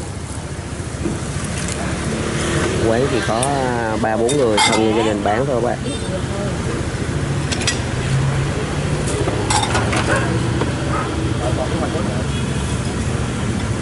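A ladle scoops and pours broth from a pot.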